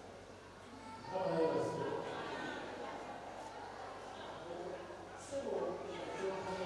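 A young man speaks into a microphone over loudspeakers.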